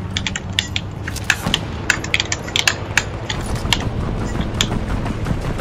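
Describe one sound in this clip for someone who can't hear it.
Wooden planks knock and clatter sharply as walls snap into place.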